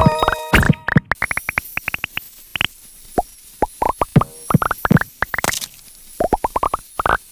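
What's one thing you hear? Quick bright game blips chime over and over as a character collects items.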